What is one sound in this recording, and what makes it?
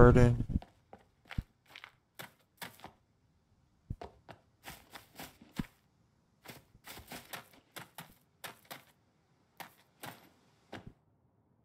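Footsteps swish through grass at a steady walking pace.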